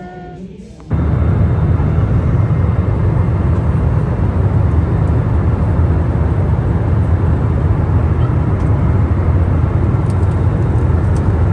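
A jet airliner's cabin roars with steady engine noise.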